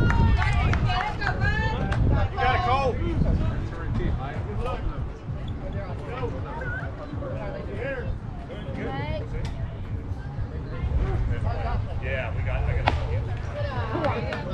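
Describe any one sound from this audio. Young voices shout and cheer outdoors.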